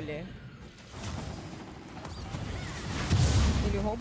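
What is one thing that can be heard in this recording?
Magic spells whoosh and zap in a fast battle.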